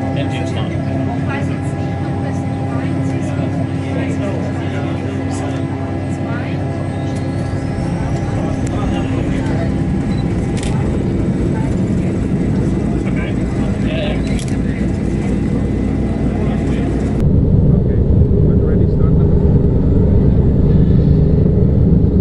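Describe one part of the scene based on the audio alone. A propeller engine roars and speeds up.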